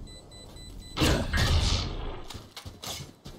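A crackling magical blast bursts loudly and fades.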